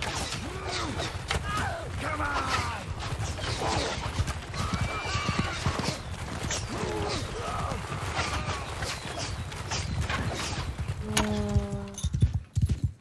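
Horses gallop and splash through shallow water.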